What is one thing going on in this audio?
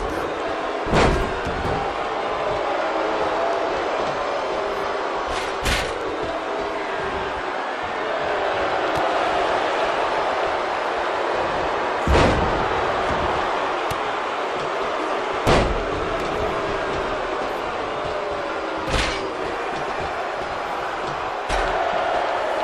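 Heavy bodies slam down onto a wrestling mat with loud thuds.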